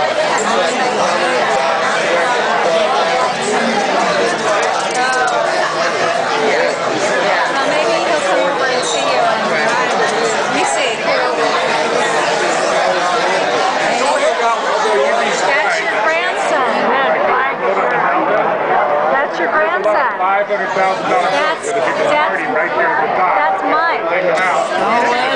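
A crowd of people chatter throughout an echoing room.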